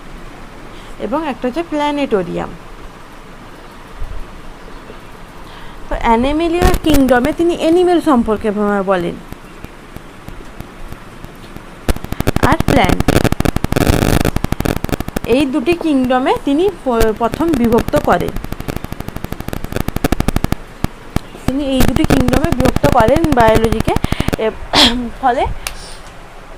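A young woman speaks calmly and clearly, close by, in short phrases.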